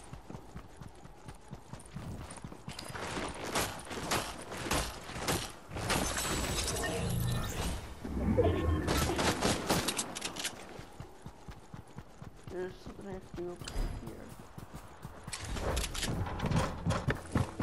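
Footsteps patter quickly across the ground.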